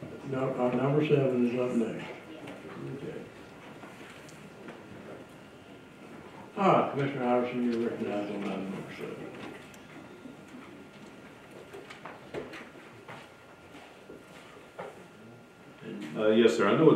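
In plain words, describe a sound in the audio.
A man speaks calmly into a microphone, heard over a loudspeaker in a large room.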